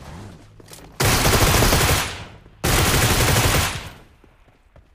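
A rifle fires in rapid loud bursts.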